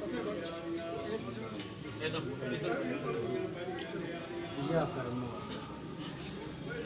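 Several men chant and sing together nearby.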